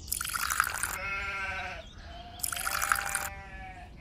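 Liquid pours into a clay pot.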